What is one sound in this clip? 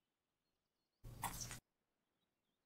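A game item is set down with a soft thud.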